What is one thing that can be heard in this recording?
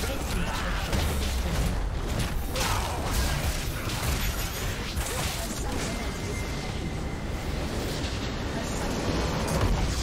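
A tower collapses with a loud explosion.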